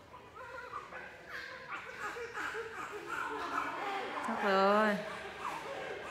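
Cloth rustles as a newborn baby is wrapped.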